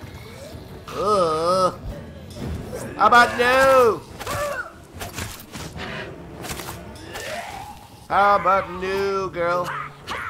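Weapon blows land in a close fight.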